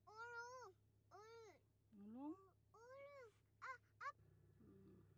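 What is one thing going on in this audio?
Young children chatter and sing in high voices close by.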